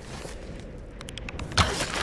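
A bowstring creaks as it is drawn.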